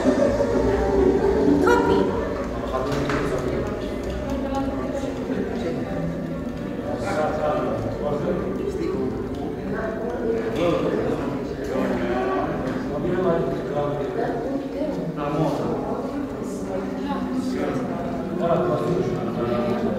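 A man chants a prayer in a steady sung voice close by.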